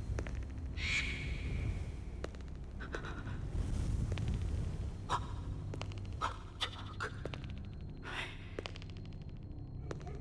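Footsteps tread slowly on grass.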